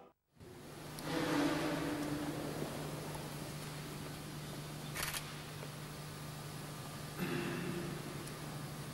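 A man murmurs a prayer in a large echoing hall.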